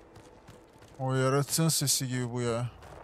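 A young man speaks with animation, close to a microphone.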